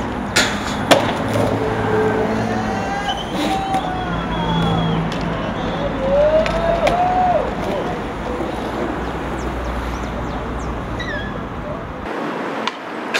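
Skateboard wheels roll over concrete.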